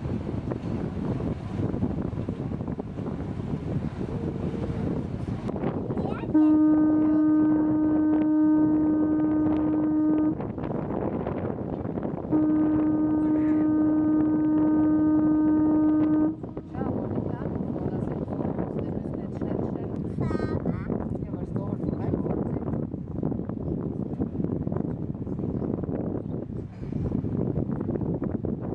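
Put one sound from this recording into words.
Water rushes and splashes against a moving boat's hull.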